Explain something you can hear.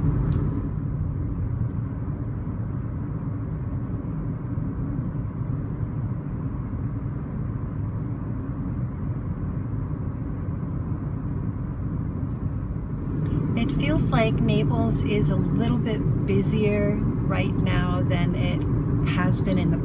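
A car's cabin rumbles as it drives along a road.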